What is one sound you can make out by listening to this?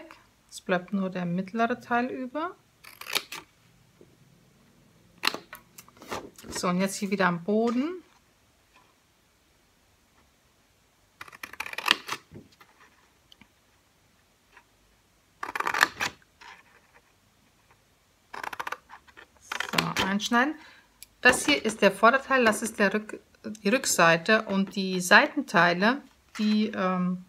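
Scissors snip through stiff paper.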